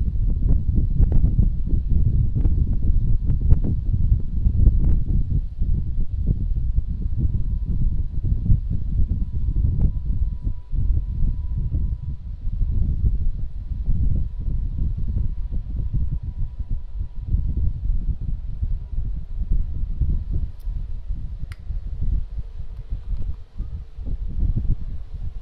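Wind buffets a microphone outdoors with a steady low rumble.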